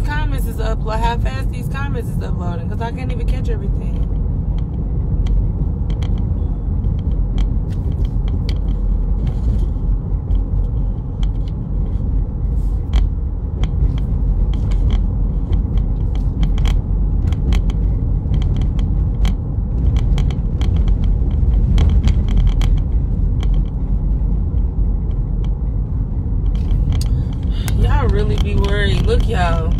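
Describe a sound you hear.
A car engine and road noise rumble low and steadily.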